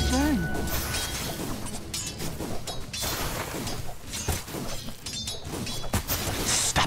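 Fantasy battle sounds clash with spell effects and weapon hits.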